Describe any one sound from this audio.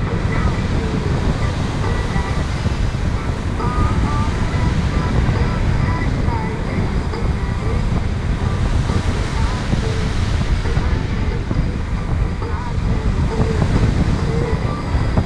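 Strong wind rushes and buffets loudly past, outdoors in the open air.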